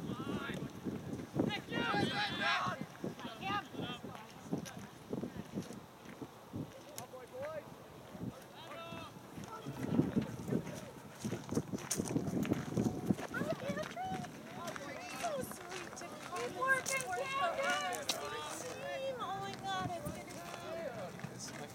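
Young players shout and call out across an open field, some way off.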